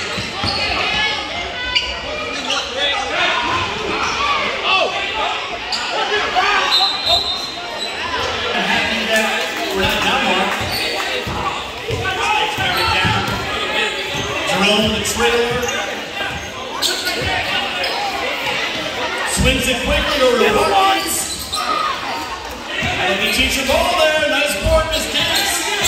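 A basketball bounces on a hard gym floor with echoing thuds.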